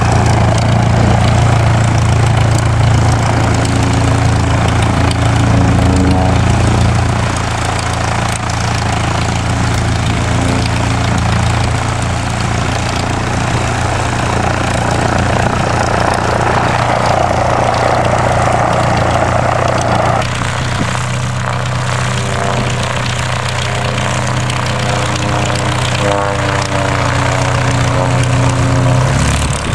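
A small propeller plane's engine idles with a steady, throbbing drone close by.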